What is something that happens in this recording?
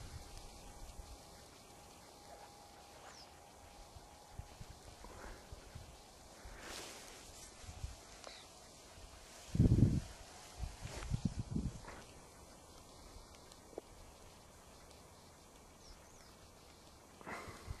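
Footsteps swish through tall dry grass.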